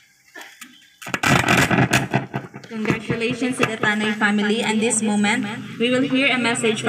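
A young woman speaks into a microphone through a loudspeaker, with animation.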